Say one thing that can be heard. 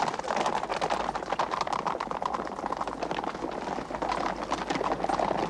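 Horses gallop past, hooves pounding.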